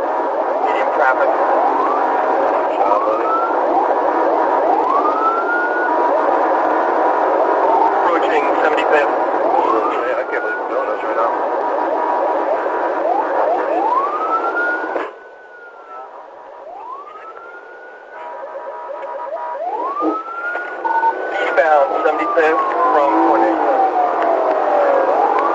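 A police siren wails.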